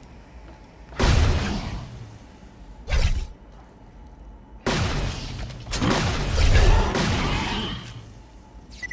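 Electric crackling zaps a target.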